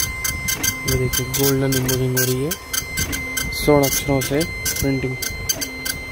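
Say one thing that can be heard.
A printer motor whirs briefly at times.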